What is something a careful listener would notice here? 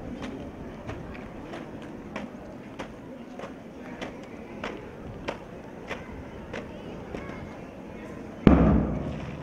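Footsteps stamp in a steady marching rhythm outdoors.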